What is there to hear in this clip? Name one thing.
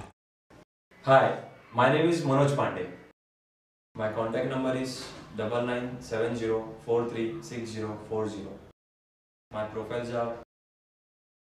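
A young man speaks calmly to the listener, close by.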